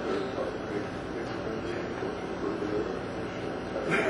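A man speaks into a microphone through loudspeakers.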